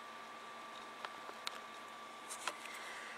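A phone is picked up with light clicks and knocks.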